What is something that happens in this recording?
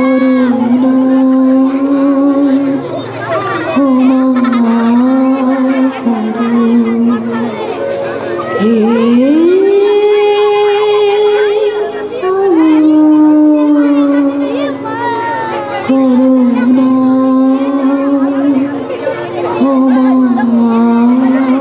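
A young man sings a slow, drawn-out song through loudspeakers.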